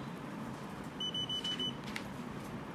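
A handheld electronic device beeps five times in quick succession.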